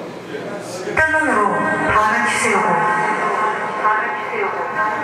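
An electric guitar plays loud chords through an amplifier.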